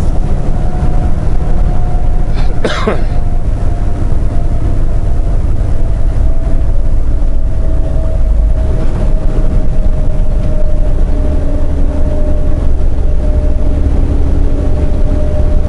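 Tyres rumble on the highway.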